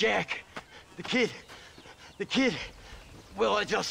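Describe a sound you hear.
An elderly man speaks with agitation.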